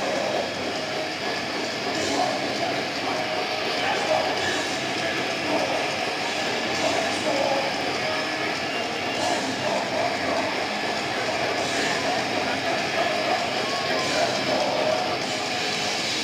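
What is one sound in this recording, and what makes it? A band plays loud live music through loudspeakers in a large echoing hall.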